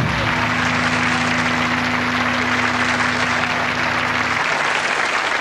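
A band holds a final low chord, then stops.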